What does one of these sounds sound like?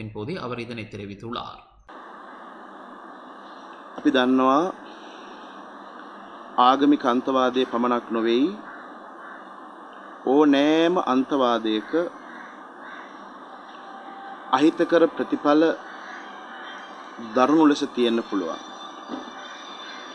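A middle-aged man speaks slowly and calmly into microphones, in short phrases with pauses.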